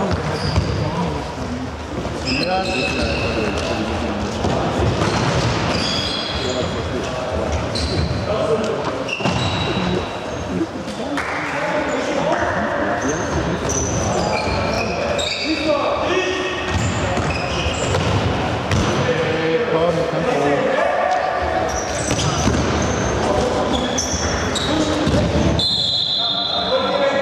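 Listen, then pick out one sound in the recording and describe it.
Shoe soles squeak sharply on a hard floor in a large echoing hall.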